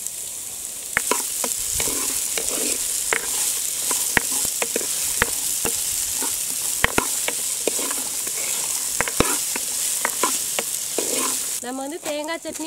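Vegetables sizzle as they fry in hot oil.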